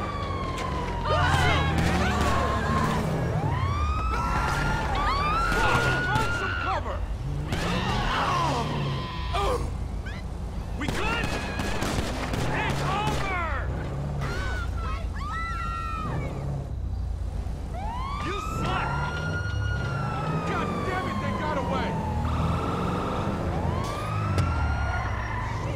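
A police siren wails and yelps close by.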